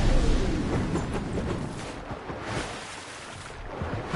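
Water splashes as a figure lands in it.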